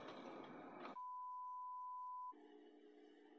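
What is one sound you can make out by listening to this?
A steady electronic test tone beeps.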